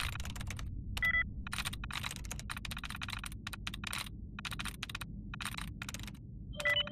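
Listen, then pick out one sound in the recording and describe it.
A game terminal beeps when a password attempt is rejected.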